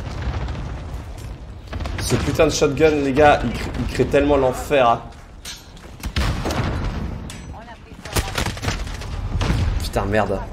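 Gunshots crack in bursts.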